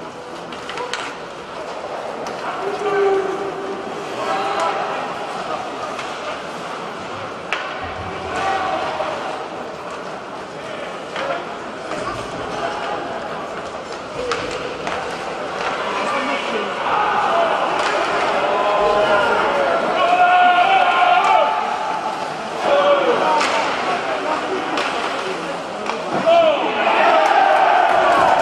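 A crowd murmurs in a large echoing arena.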